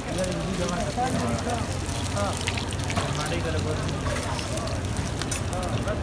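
Dough sizzles on a hot griddle.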